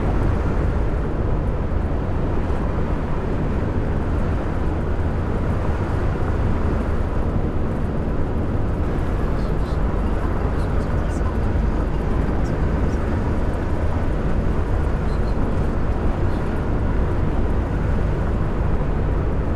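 Tyres roll on a motorway with a steady rushing noise.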